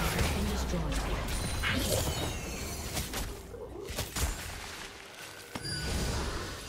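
Game spell effects whoosh and crackle during a fight.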